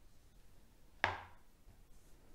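A stiff cardboard page of a board book turns and knocks down.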